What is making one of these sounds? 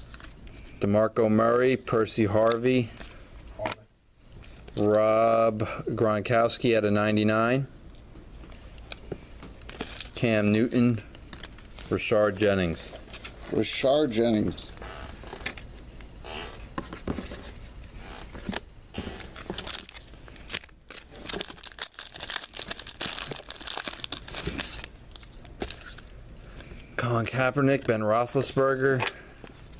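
Trading cards flick and rustle as they are handled.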